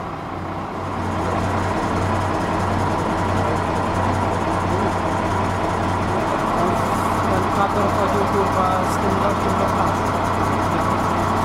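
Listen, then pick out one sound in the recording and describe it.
A vehicle engine idles nearby with a steady low hum.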